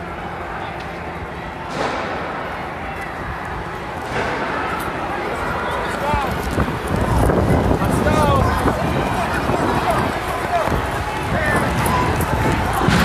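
A crowd of people shouts and chatters outdoors in the street.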